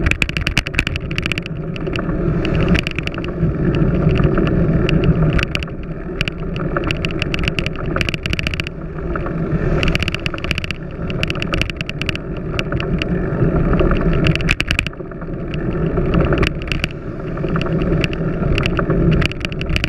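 Bicycle tyres roll and rattle over a paved path.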